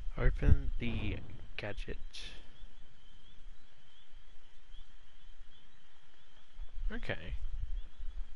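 A man talks casually into a headset microphone, close up.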